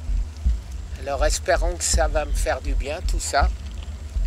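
An elderly man speaks calmly close to the microphone.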